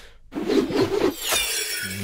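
A staff whooshes through the air with a shimmering swish.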